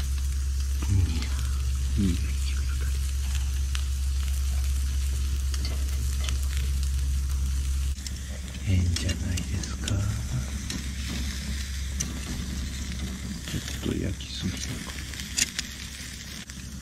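Meat sizzles on a grill.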